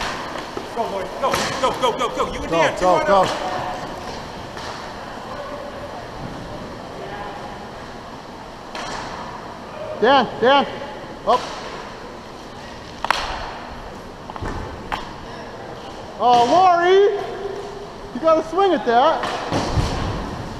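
Men shout to each other across a large echoing rink.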